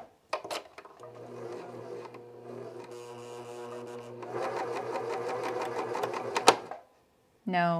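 A serger sewing machine runs with a steady whirring hum.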